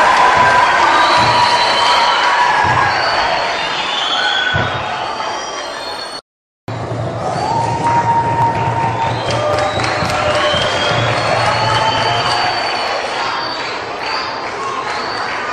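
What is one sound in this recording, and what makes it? A large children's choir sings together in a big echoing hall.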